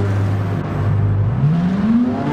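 A race car engine revs up sharply as the car pulls away.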